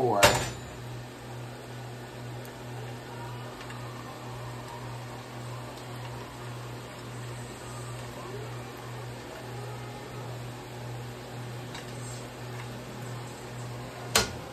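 Food sizzles softly in a frying pan.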